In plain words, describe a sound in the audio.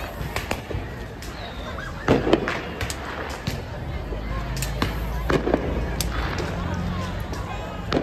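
Firecrackers pop and crack sharply nearby.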